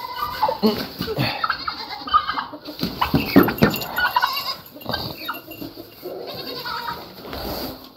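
A herd of goats bleats nearby.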